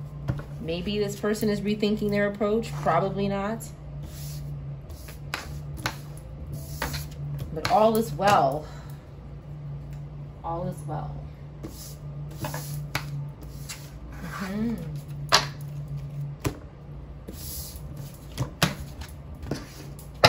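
Cards slide and tap softly on a table.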